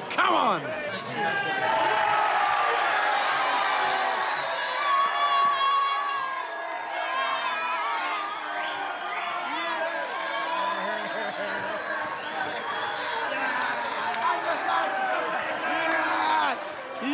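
A crowd cheers and chants loudly indoors.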